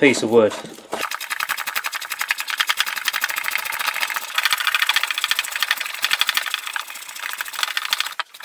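A chisel scrapes and shaves wood.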